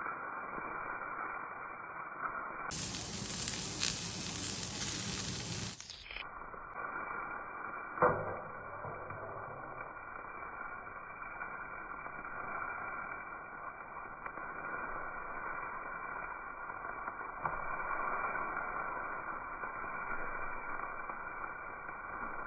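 Food sizzles and crackles in a hot wok.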